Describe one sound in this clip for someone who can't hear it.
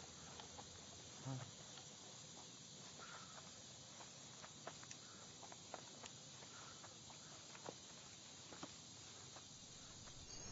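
Footsteps rustle and snap through dense undergrowth.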